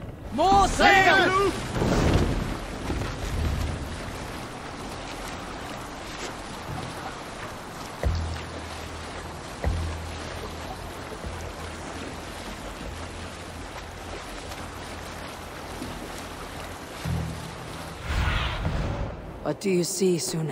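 Water splashes and rushes steadily against a wooden boat's hull.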